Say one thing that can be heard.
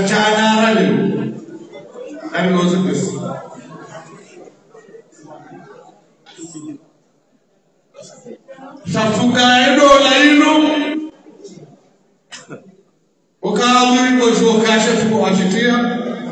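A man chants in a melodic voice through a microphone, in phrases broken by pauses.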